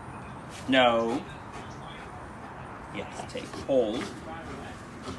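A man speaks to a dog in a high, coaxing voice.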